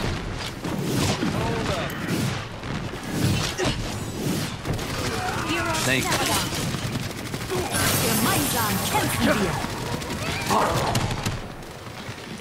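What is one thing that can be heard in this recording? Energy blasts crackle and zap nearby.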